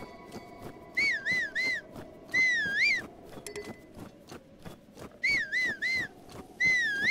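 A high whistle calls out in short rising and falling notes, over and over.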